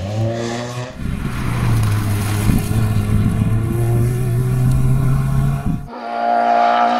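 A second rally car engine revs hard and roars past.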